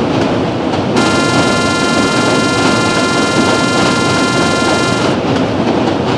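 A train horn blares steadily.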